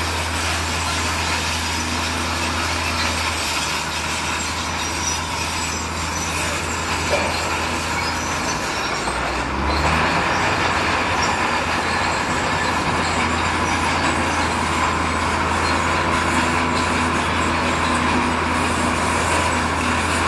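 Bulldozer tracks clank and grind over rubble.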